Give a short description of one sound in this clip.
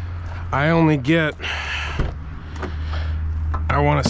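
A truck door clicks open.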